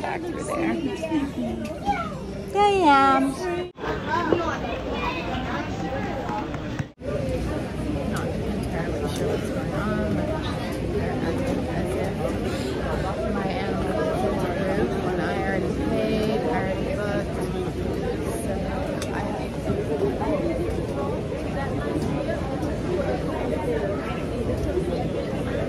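Many voices murmur in a large echoing hall.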